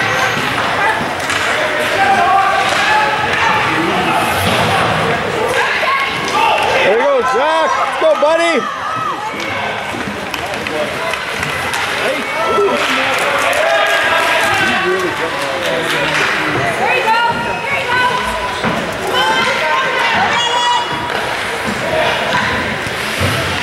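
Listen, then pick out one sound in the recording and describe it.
A crowd of spectators cheers and talks loudly in an echoing arena.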